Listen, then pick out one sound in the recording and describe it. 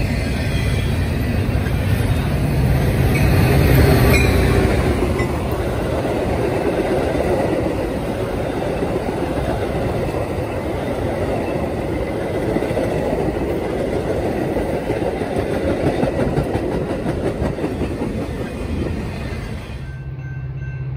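A passenger train rumbles past close by with wheels clattering on the rails.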